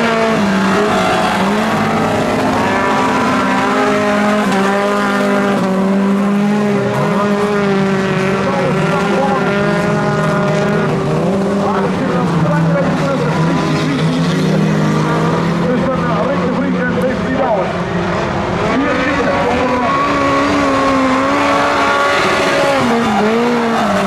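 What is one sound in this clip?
Several car engines roar loudly and rev up and down as cars race close by.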